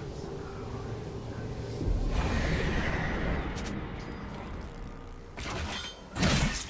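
Video game combat effects of spells and blows clash in bursts.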